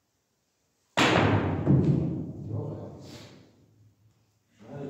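A cue strikes a pool ball, and the balls clack and roll across the table.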